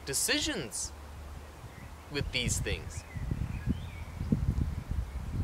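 Wind buffets outdoors with a low rumble.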